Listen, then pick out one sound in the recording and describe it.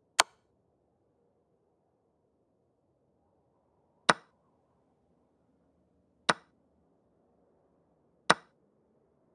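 Short sharp clicks sound as chess pieces are moved, now and then.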